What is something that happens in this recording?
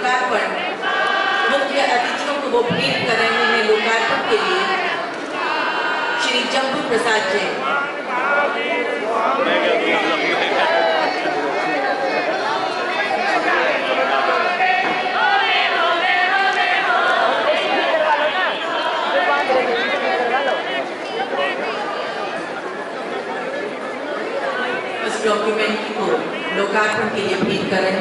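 A large crowd talks and calls out all at once, echoing in a big hall.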